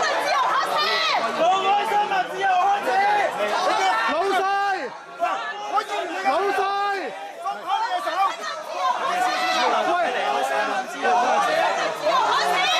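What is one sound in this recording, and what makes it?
A crowd of men and women talk and shout over one another in a large echoing hall.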